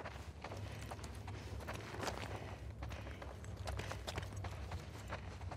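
Footsteps tread slowly across a floor.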